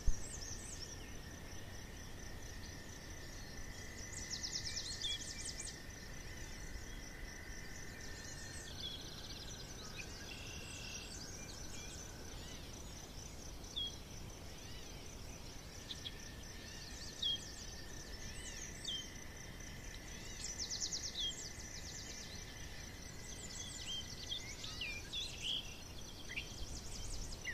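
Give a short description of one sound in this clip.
A hedgehog snuffles and rustles softly through grass.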